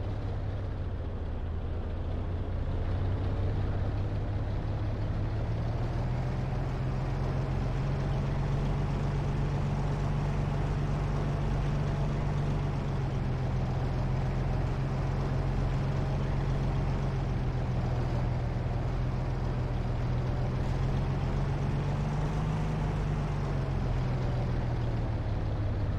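A tank engine rumbles steadily and deeply as the tank drives.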